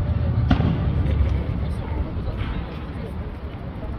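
Fireworks crackle and pop overhead.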